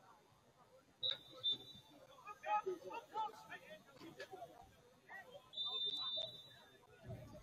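A referee's whistle blows in short shrill bursts.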